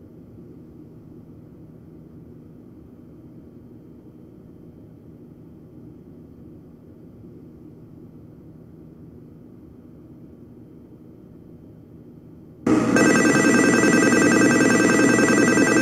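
A stopped electric train hums quietly and steadily.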